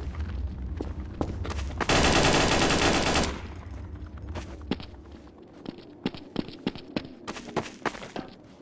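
Footsteps tap steadily on hard stone.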